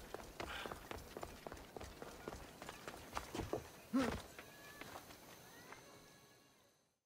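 Footsteps run quickly over stone and dirt.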